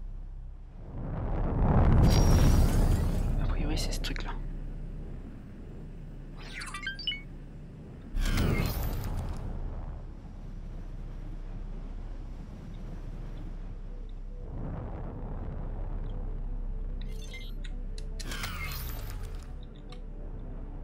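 A spaceship engine whooshes in surges of thrust.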